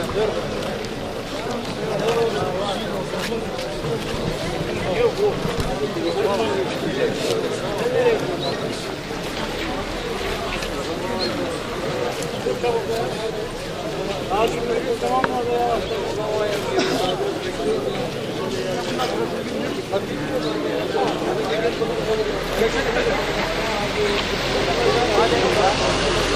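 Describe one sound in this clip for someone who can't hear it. A crowd of elderly men chatter and greet each other close by, outdoors.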